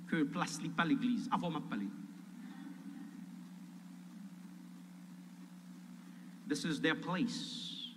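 A man speaks with emotion into a microphone, heard through loudspeakers in a large echoing hall.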